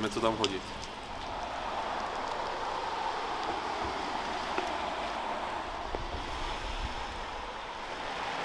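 A river flows steadily nearby.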